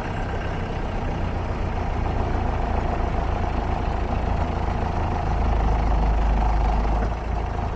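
A vehicle engine rumbles steadily while driving over a rough dirt track.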